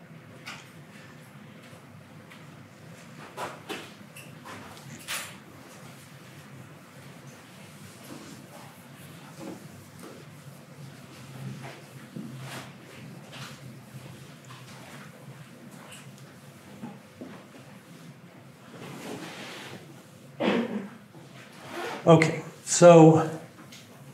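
A man talks calmly, with a few louder words toward the end.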